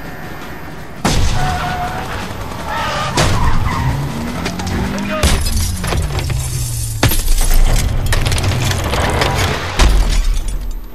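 Glass shatters and metal crashes in a loud collision.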